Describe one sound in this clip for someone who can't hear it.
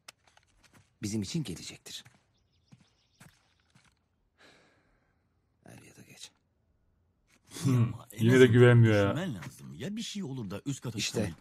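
A second man answers in a low voice.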